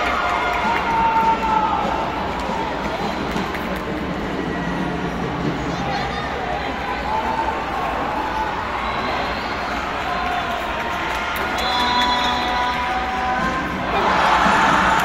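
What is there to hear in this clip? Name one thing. A crowd murmurs and chatters throughout a large echoing arena.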